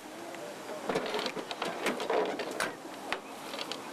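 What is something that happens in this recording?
A metal truck toolbox lid rattles and bangs.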